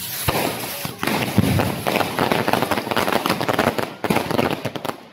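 Fireworks burst with loud booms.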